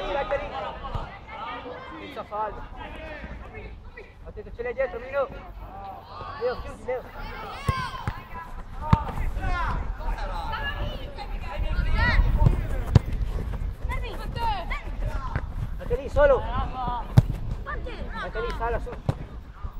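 Young players shout and call out across an open pitch.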